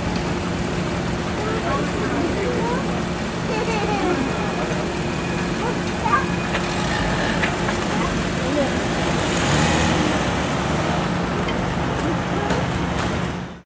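A car engine hums as the car pulls away.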